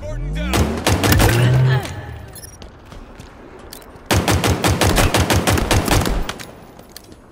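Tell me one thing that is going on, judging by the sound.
A pistol fires rapid shots in quick bursts.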